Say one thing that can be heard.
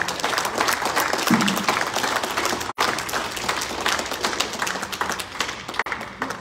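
A woman speaks with animation into a microphone in a large echoing hall.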